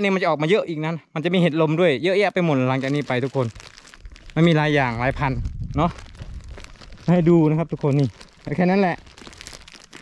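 A man speaks close up, calmly and with animation.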